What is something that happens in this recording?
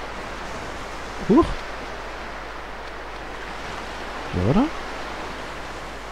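Waves wash softly onto a shore.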